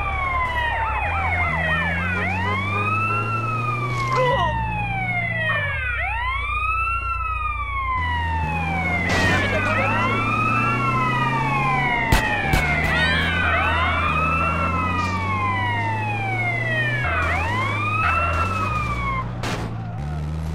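An ambulance siren wails up and down in repeated sweeps.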